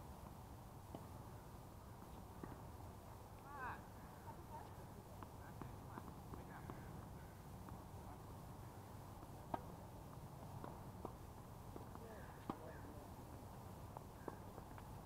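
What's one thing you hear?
Tennis balls are struck with rackets, with sharp pops repeating outdoors.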